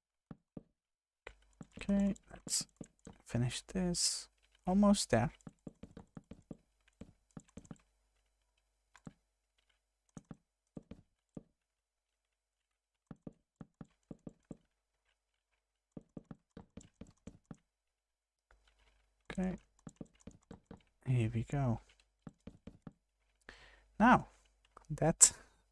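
Wooden blocks knock softly as they are placed one after another.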